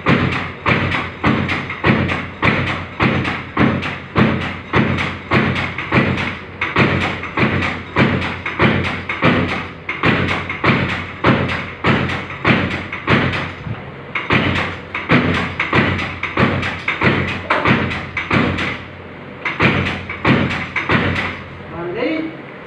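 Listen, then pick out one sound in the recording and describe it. A hand-operated soap stamping press clanks with each fast stroke.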